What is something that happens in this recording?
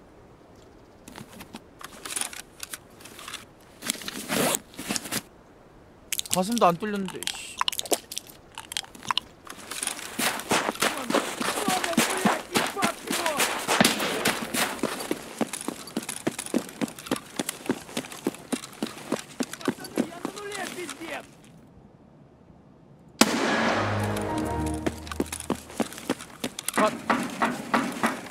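Footsteps crunch over debris on a hard floor.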